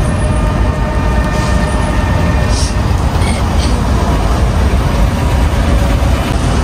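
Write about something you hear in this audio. A bus engine idles nearby.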